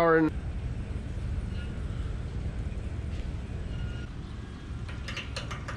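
A metal hose coupling clicks.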